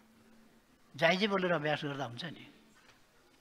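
An elderly man speaks formally into a microphone.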